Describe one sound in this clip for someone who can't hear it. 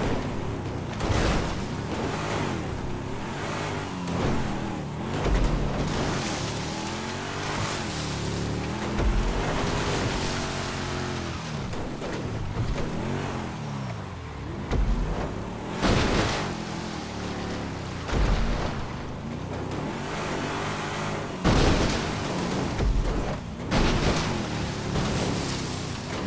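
Water splashes under car tyres.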